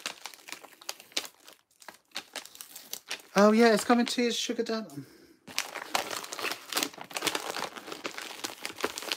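Paper envelopes rustle and crinkle as they are handled.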